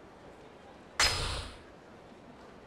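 A game menu chime sounds as a message opens.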